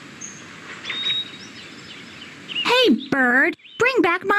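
A cartoon bird chirps and warbles.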